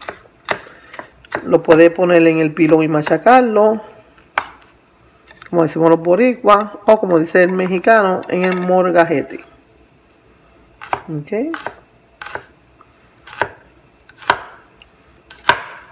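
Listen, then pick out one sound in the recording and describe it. A knife chops on a wooden cutting board with sharp taps.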